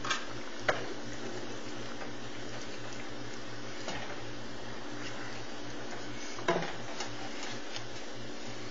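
A wooden spoon scrapes and knocks against a pan.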